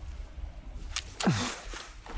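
A gunshot cracks sharply.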